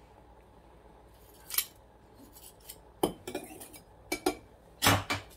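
A knife scrapes and taps against the rim of a metal pot.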